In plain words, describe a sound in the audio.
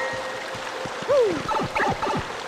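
A springy video game jump sound rises and falls.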